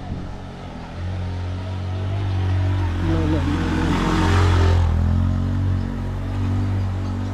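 A motorcycle engine approaches and passes close by.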